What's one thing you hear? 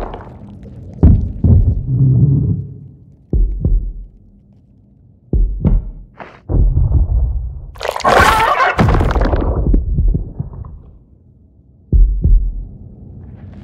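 Hands thump onto wooden rungs while climbing.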